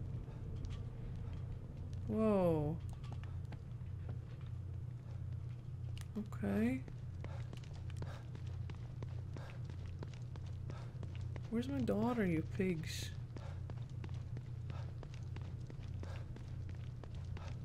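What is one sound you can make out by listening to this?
Footsteps hurry over hard ground.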